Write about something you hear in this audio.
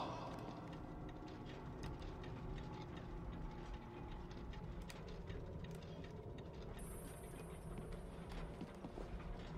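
Large metal gears turn with a low, steady rumble and clicking.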